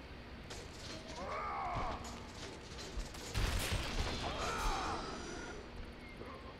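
Chained blades whoosh and strike with sharp clangs.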